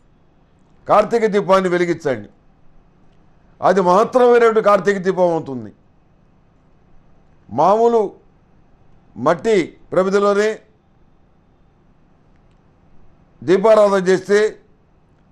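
An elderly man speaks calmly and expressively into a close microphone, in short phrases with pauses.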